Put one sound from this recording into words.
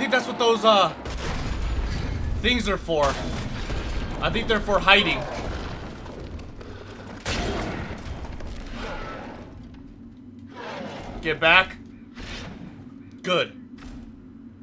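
A large monster roars and growls.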